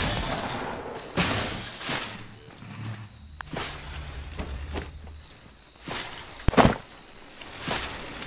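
A shopping cart rattles as it rolls along.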